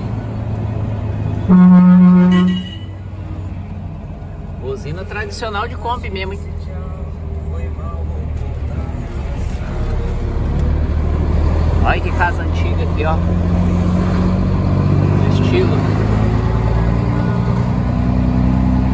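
A bus engine rumbles steadily as the bus drives along a road.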